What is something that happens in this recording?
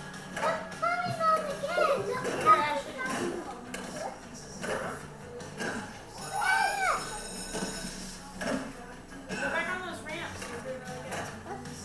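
Skateboard wheels roll and clatter, heard through a television speaker.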